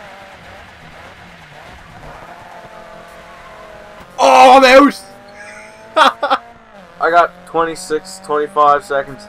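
A racing car engine revs and its pitch climbs as it speeds up.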